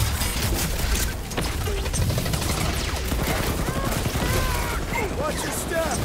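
Blaster guns fire rapid shots.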